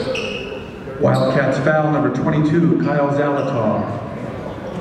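Spectators shout and cheer loudly.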